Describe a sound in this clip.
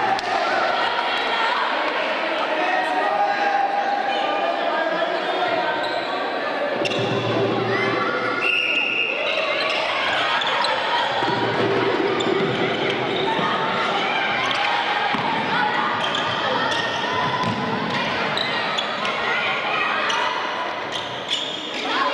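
A large crowd chatters and shouts in an echoing hall.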